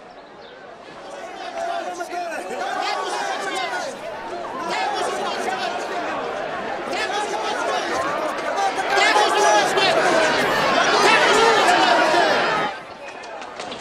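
A crowd of men shouts and jeers loudly.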